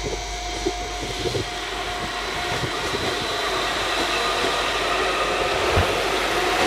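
Steel wheels roll and clatter on rails, louder as the train gathers speed.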